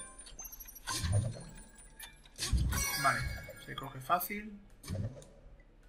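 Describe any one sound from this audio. Springy boings sound as a small character bounces on cushions.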